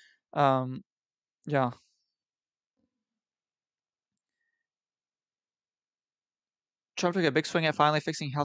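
A young man talks into a close microphone, in short bursts with long pauses.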